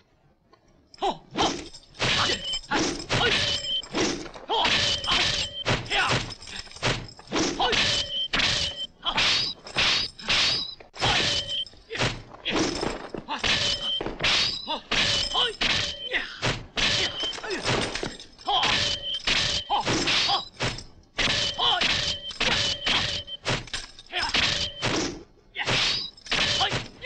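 Metal blades clash and clang again and again.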